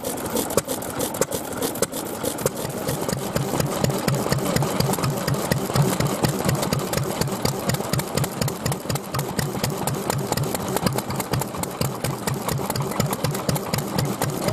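Engine valves click and tick in quick succession.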